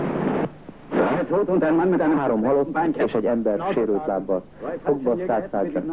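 A younger man speaks.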